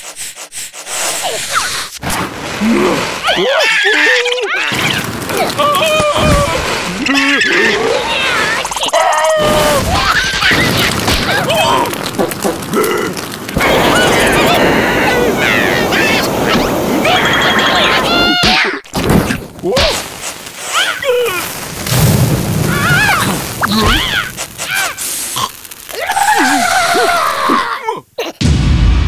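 Cartoon creatures chatter and squeal in high, squeaky voices.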